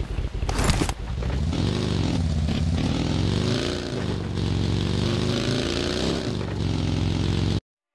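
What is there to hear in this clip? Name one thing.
A buggy engine revs and hums as it drives over grass.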